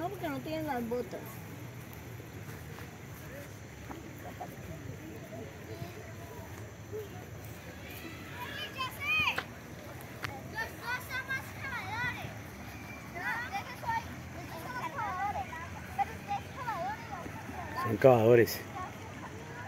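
A young girl calls out excitedly nearby.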